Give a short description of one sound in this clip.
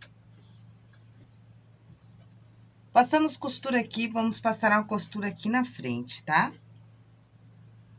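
Cloth rustles softly as hands smooth and fold it.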